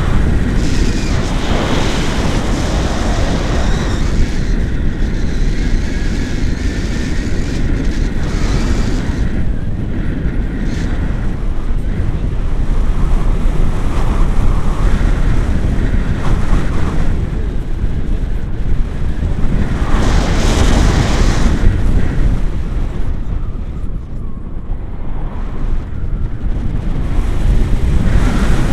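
Strong wind rushes and buffets loudly, as if heard in flight.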